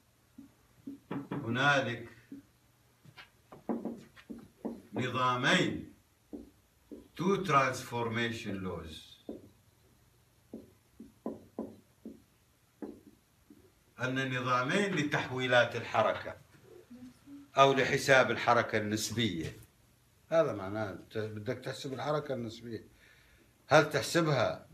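An elderly man lectures with pauses.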